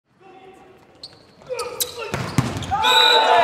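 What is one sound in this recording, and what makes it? A volleyball is spiked with a sharp smack.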